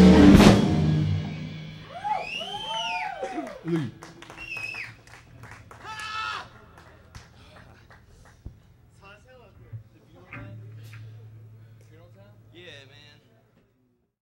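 A band plays live music in an echoing room.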